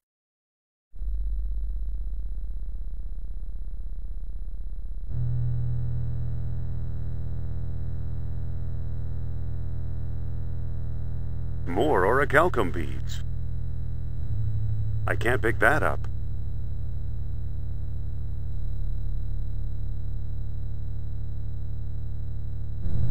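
Electronic game music plays steadily.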